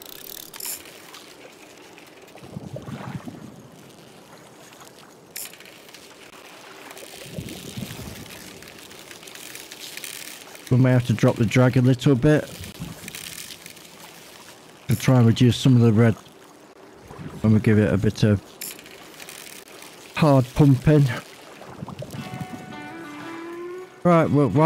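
A fishing reel whirs as line is wound in.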